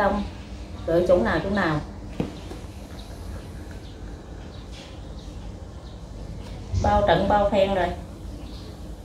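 A middle-aged woman speaks in a sad, quiet voice close by.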